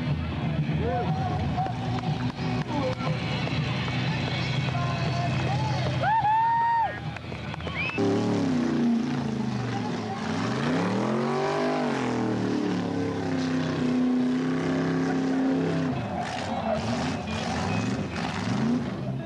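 A car engine roars and revs hard.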